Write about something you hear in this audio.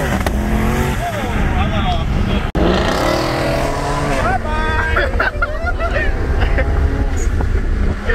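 A car engine roars loudly at high speed.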